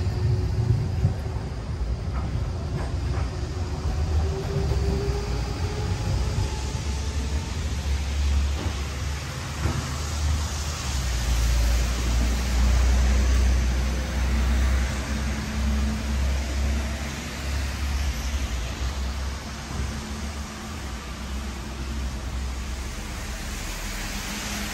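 Rain patters steadily on umbrellas and wet pavement outdoors.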